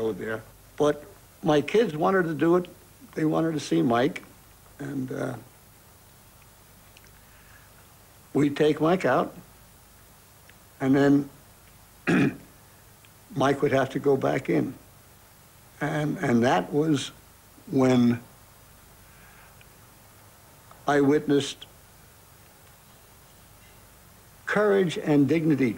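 An elderly man speaks calmly in pauses, close to a microphone.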